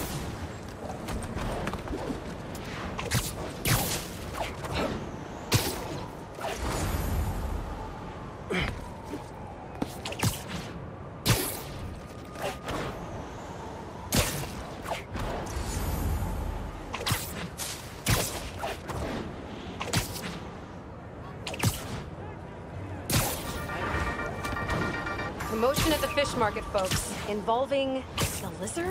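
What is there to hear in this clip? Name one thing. Web lines shoot out with sharp thwips.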